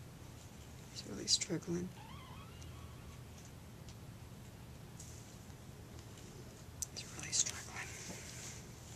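A middle-aged woman speaks softly close by.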